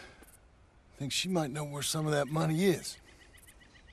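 A man speaks calmly from a short distance.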